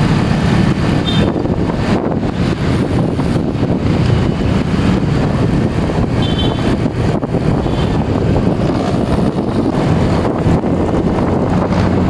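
A motorbike engine hums steadily while riding along a road.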